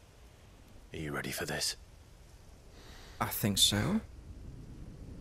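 A young man answers quietly.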